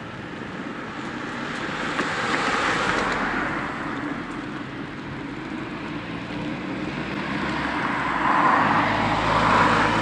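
Wind rushes past, rising in gusts.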